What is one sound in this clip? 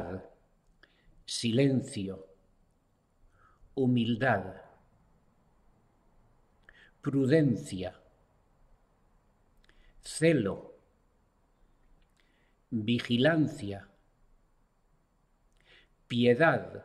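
An elderly man speaks calmly and slowly into a close microphone, with pauses between phrases.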